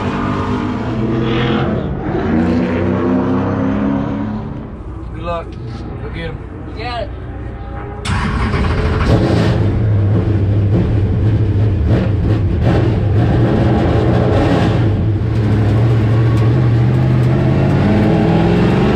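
A race car engine rumbles loudly and steadily.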